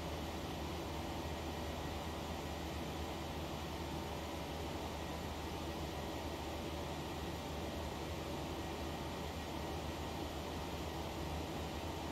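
Jet engines hum steadily with a constant roar of rushing air.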